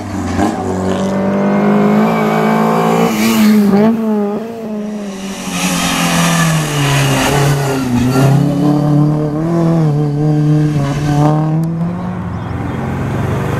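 A racing car engine roars and revs hard as the car climbs a winding road.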